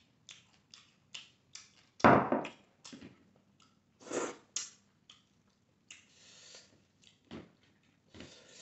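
A man chews food noisily with his mouth open.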